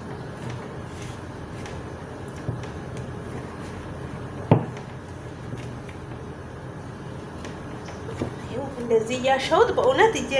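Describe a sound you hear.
Hands knead soft dough in a bowl with quiet squishing and patting.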